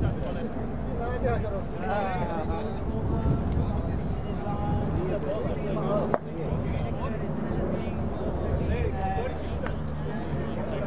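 Several men talk and call out to each other at a distance outdoors.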